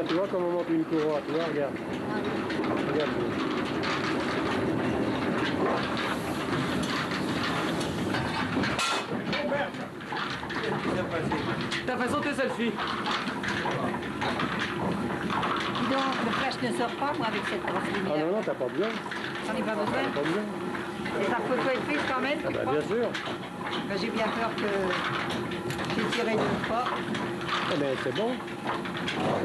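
Flat drive belts run and flap over the pulleys of water mill machinery.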